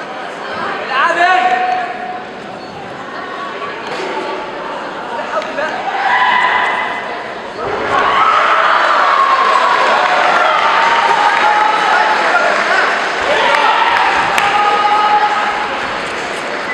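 Young men shout sharply while sparring.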